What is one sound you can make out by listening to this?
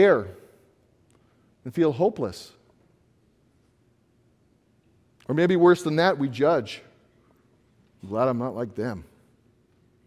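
A middle-aged man speaks calmly in short phrases through a microphone.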